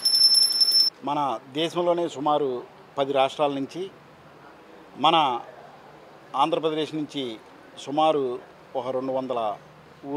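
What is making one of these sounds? A middle-aged man speaks into microphones close by, in a calm, steady voice.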